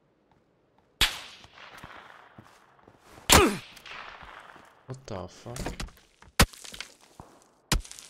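Sharp rifle shots crack loudly, each followed by a rolling echo.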